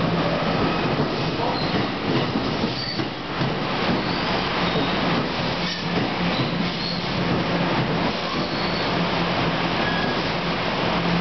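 A train's engine hums steadily.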